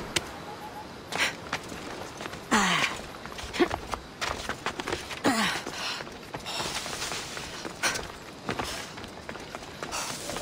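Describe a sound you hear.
Footsteps scrape and thud on rock.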